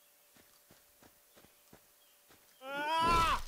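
Footsteps thud quickly on grass.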